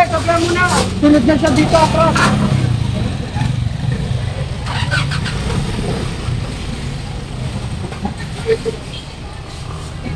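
A motorcycle engine rumbles steadily nearby.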